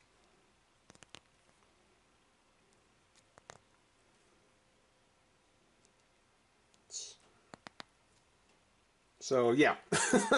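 Small plastic parts click softly as fingers handle them.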